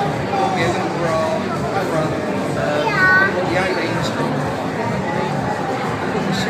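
A crowd of people talk in the distance in a large echoing hall.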